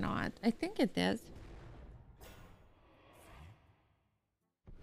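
A magical spell effect whooshes and chimes.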